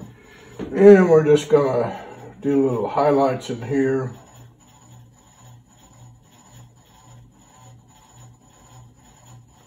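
A brush dabs and strokes softly on paper.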